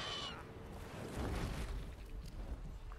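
A heavy creature crashes to the ground with a deep rumble.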